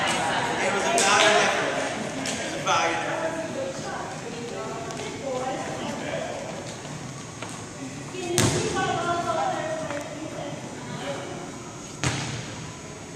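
A volleyball thumps sharply against a hand.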